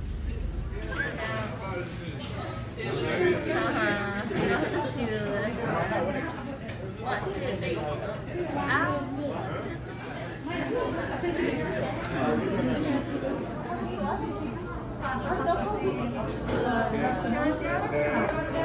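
Several men and women chatter nearby in a busy room.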